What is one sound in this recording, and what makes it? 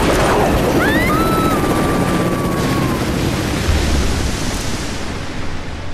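Rock and ice crash down with a heavy, rumbling roar.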